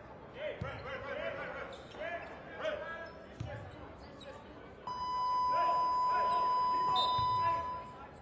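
A basketball bounces on the court with dull thuds.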